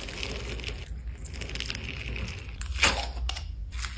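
Fingers tap and click on a hard plastic container.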